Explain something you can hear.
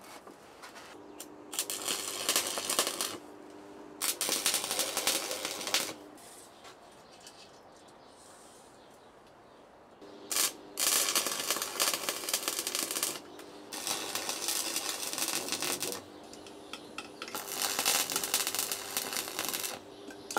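An arc welder crackles and sizzles in bursts.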